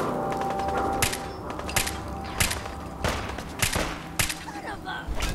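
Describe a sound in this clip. A rifle fires sharp shots in quick succession.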